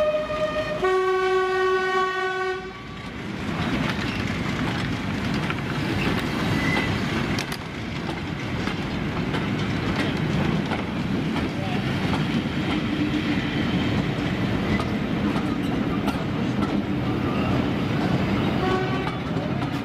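Freight wagons and coaches clatter over rail joints.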